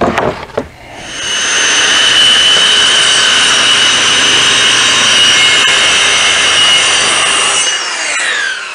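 A circular saw whines loudly as it cuts through a board.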